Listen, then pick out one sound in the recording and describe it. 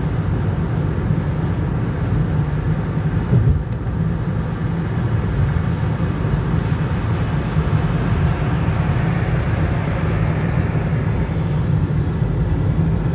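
Tyres roar steadily on a motorway surface.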